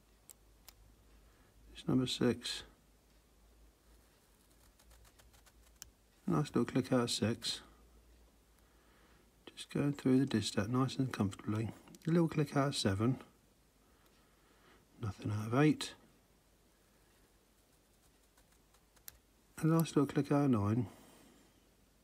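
A small metal tool clicks faintly inside a padlock.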